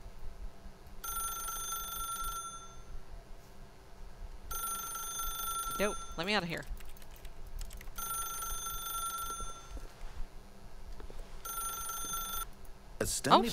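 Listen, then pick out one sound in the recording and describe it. A telephone rings in short repeated bursts.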